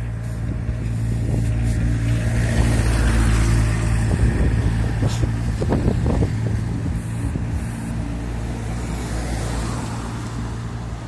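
An engine rumbles close by and pulls away.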